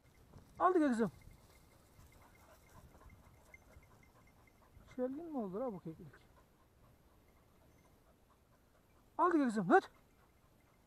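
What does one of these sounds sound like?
A dog whines in long, wavering cries.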